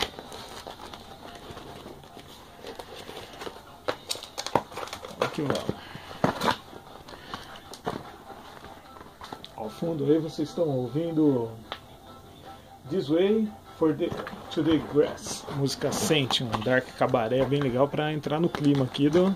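A cardboard box scrapes and thumps as it is handled.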